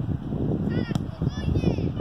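A football thuds as a child kicks it.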